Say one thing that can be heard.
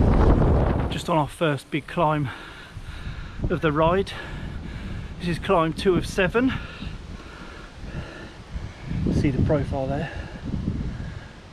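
A man talks casually and close up.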